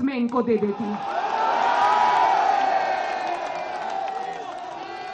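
A crowd cheers and chants loudly.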